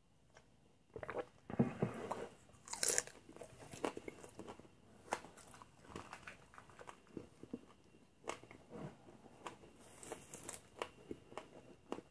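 A man bites and chews crunchy food close by.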